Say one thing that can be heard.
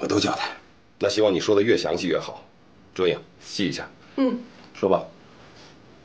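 A middle-aged man speaks firmly close by.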